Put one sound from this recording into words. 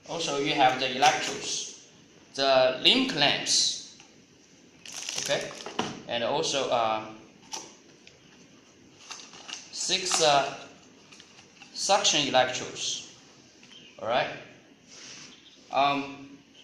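Cardboard boxes scrape and tap on a table.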